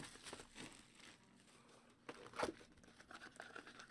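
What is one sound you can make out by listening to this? A cardboard box flap tears open.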